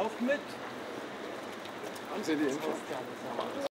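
A bicycle rolls by on a wet street.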